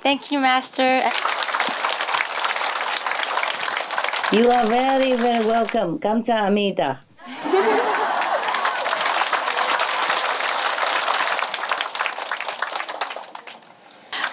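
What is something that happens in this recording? A large crowd applauds in a big hall.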